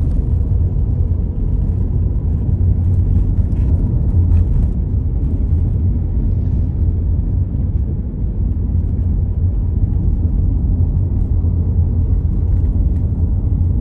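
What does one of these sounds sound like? Tyres roll over a rough road surface.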